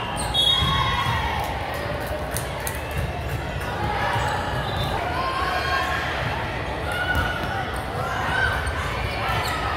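Many young women chatter and call out in a large echoing gym.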